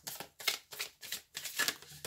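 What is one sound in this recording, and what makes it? Cards rustle and slide as a hand handles them.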